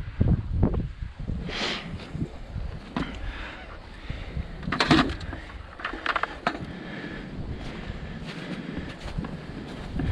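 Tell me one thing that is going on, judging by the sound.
Boots crunch on snow and dry grass.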